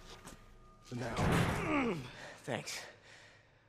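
A wounded man answers weakly, breathing hard.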